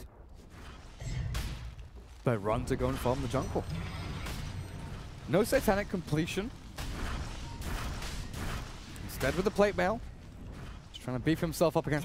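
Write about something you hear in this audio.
Spell effects and blows from a video game clash and crackle.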